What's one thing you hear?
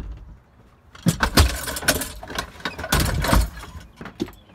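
A lawn mower is lifted and set down with loud metal clunks and scrapes.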